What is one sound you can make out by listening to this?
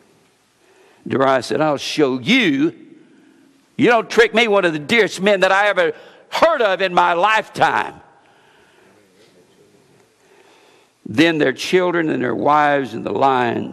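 An older man reads aloud into a microphone in a calm, deliberate voice.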